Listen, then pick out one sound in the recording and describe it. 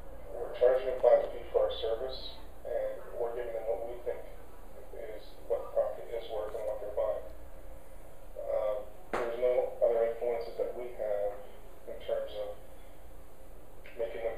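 A middle-aged man talks calmly through a loudspeaker.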